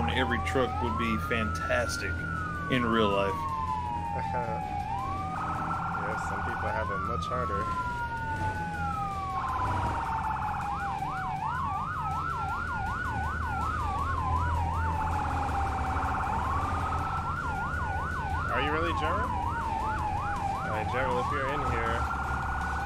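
A siren wails, rising and falling over and over.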